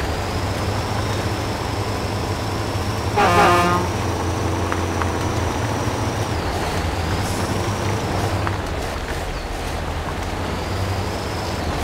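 A heavy truck engine rumbles steadily as it crawls along.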